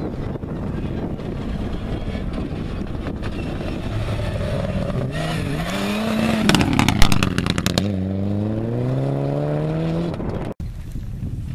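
A rally car engine roars and revs hard as the car speeds past.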